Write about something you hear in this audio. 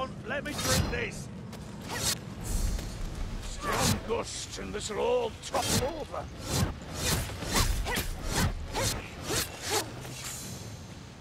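Blades slash and strike hard in a close fight.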